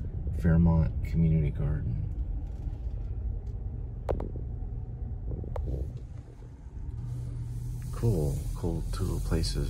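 A car engine hums steadily at low pitch.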